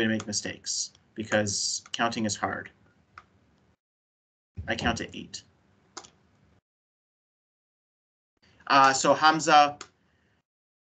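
A man speaks calmly over an online call, in short bursts.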